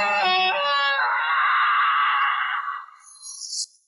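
A soda bottle fizzes and sprays as it is opened.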